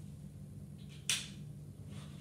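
A buckle clicks shut once.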